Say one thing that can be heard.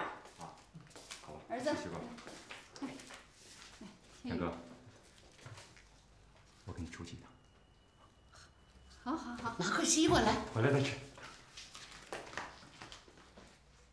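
A middle-aged woman speaks warmly, close by.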